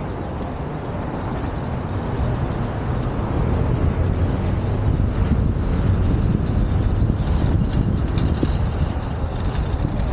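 Traffic hums along a city street.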